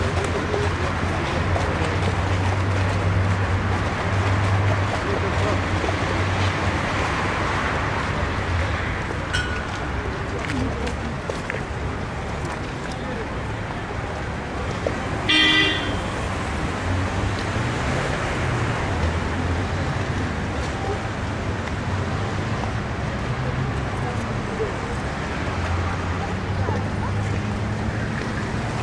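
Water ripples and laps gently outdoors in a steady breeze.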